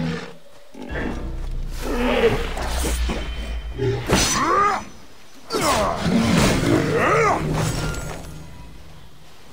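A large animal roars and grunts loudly.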